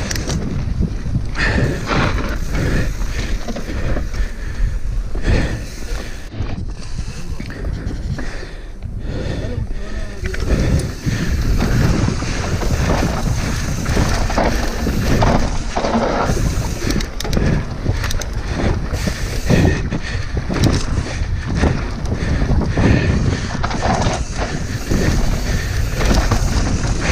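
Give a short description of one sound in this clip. A bicycle's frame and chain clatter over bumps.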